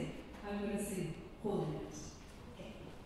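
A woman sings into a microphone through loudspeakers in an echoing hall.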